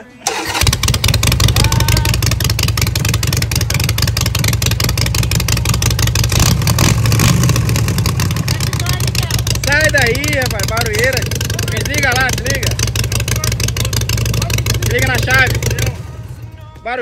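A motorcycle engine rumbles loudly at idle close by, then cuts off.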